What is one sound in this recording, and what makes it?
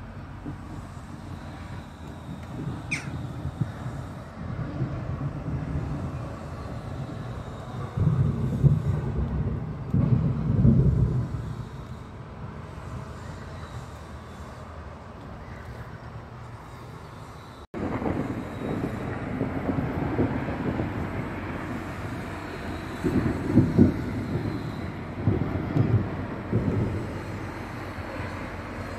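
Wind gusts roughly against the microphone outdoors.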